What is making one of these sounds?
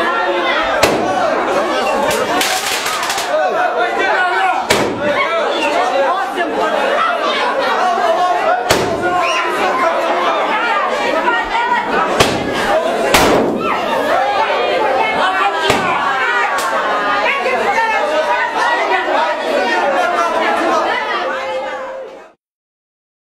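A crowd of people talks and chatters loudly in a large room.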